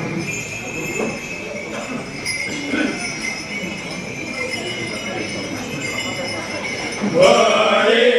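A man speaks loudly into a microphone, heard through loudspeakers in an echoing hall.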